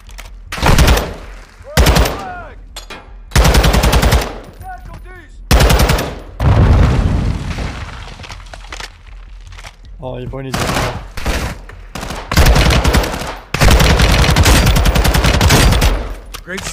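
An automatic rifle fires rapid, loud bursts up close.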